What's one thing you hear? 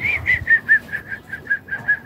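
A man knocks a metal bar against something outdoors.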